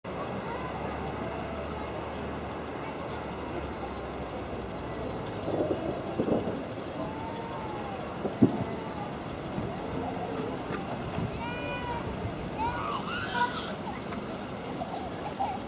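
A crowd of people chatter outdoors at a distance.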